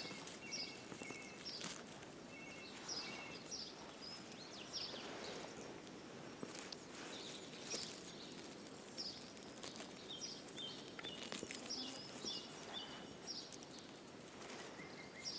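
Dry pine needles rustle and crackle under a hand.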